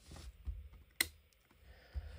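A switch clicks once.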